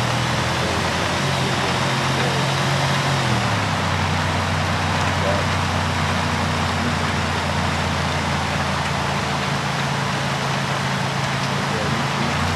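A pickup truck engine drones steadily and drops in pitch as it shifts gear.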